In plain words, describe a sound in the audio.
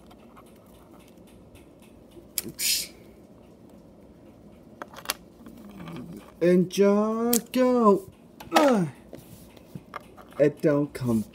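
Small plastic pieces click and rattle as they are handled.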